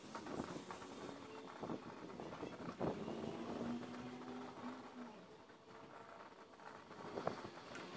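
A metal lid scrapes and clanks on a small stove.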